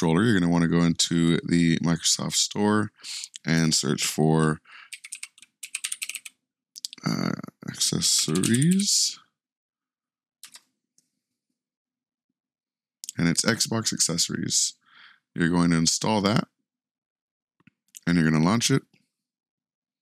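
A man talks casually and close into a microphone.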